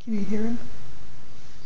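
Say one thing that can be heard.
A cat meows once, briefly.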